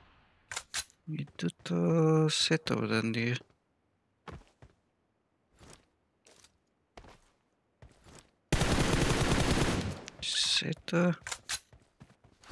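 A young man talks with animation through a headset microphone.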